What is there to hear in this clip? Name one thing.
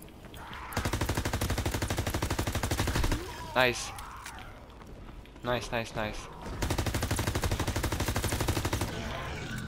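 A rapid-fire gun shoots in fast, steady bursts.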